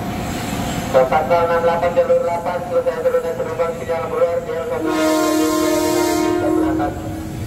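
An electric train whines as it pulls away.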